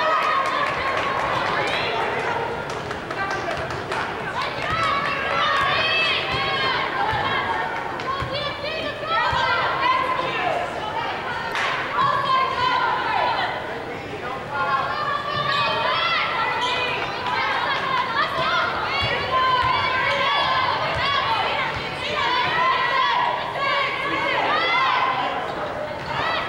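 Basketball shoes squeak on a hardwood floor in a large echoing gym.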